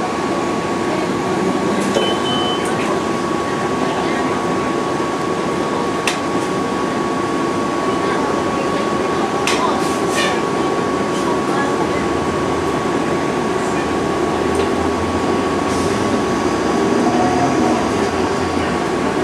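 A vehicle's engine rumbles steadily from inside while riding along a street.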